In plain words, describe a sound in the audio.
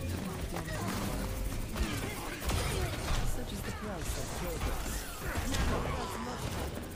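Game weapons fire and clatter in quick bursts.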